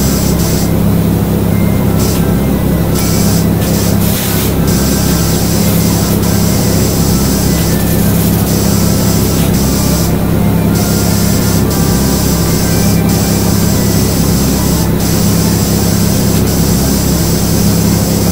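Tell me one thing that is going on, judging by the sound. A pressure washer sprays a steady, hissing jet of water.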